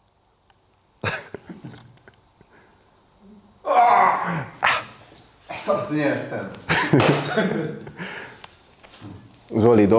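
Two men laugh and talk with animation close by.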